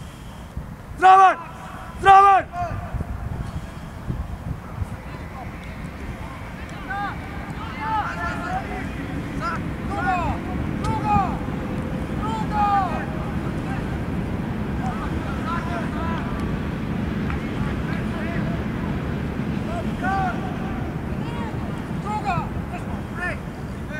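Young players shout and call to each other across an open outdoor pitch.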